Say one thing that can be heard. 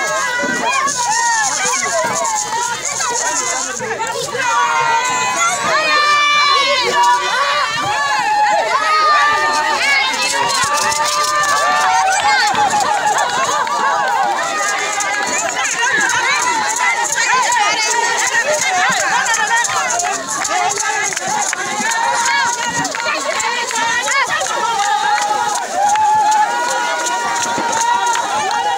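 A large crowd of women and children sings and cheers loudly outdoors.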